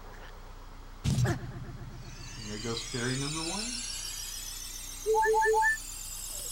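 A video game plays magical chiming sound effects.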